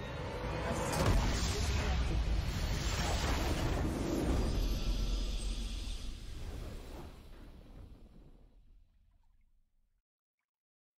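A triumphant fanfare swells and then fades out.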